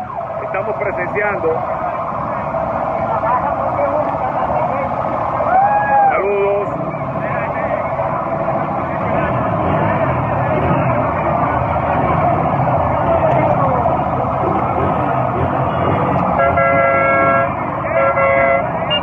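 A large crowd shouts and chatters loudly outdoors.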